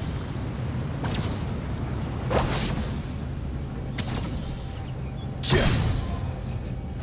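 Electric magic crackles and bursts in short, sharp blasts.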